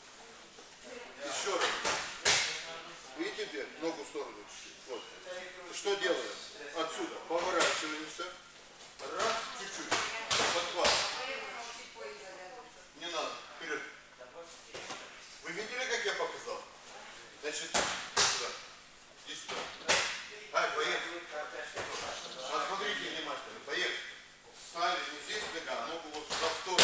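A middle-aged man explains calmly in an echoing hall.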